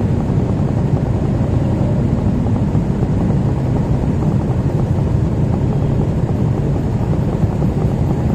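Motorbike engines idle nearby with a steady low rumble.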